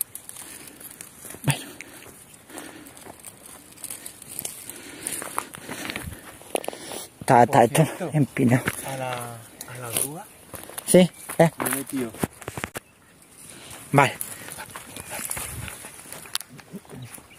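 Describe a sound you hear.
Footsteps crunch on dry ground and brush through low plants.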